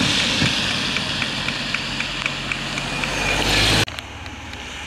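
A car engine hums nearby.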